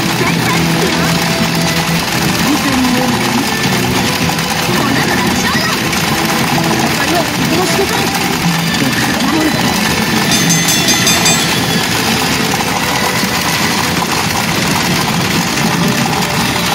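A pachinko machine plays loud electronic music and sound effects.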